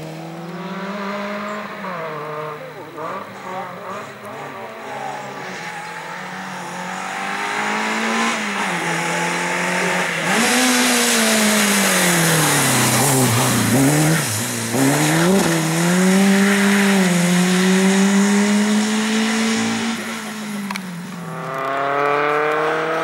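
A rally car engine roars and revs hard, rising and falling in pitch as the car accelerates and brakes.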